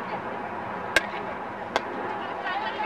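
A hockey stick smacks a ball sharply.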